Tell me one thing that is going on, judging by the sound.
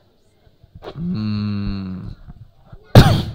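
A man lets out a long drawn-out groan through a microphone.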